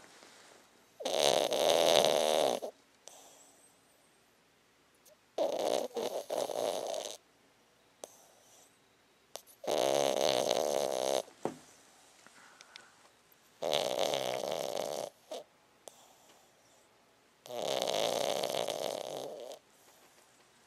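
A dog snores loudly in slow, even breaths close by.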